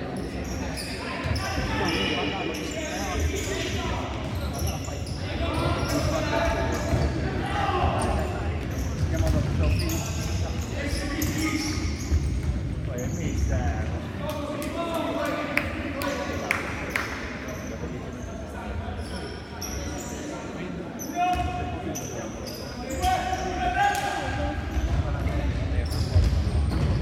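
A ball thuds as players kick it in a large echoing hall.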